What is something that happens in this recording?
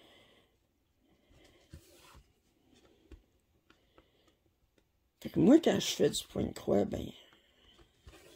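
Thread rasps softly as it is pulled through cloth.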